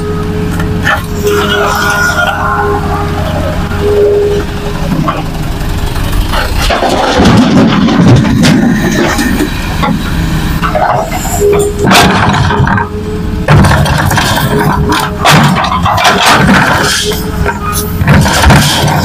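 A hydraulic excavator's diesel engine runs under load.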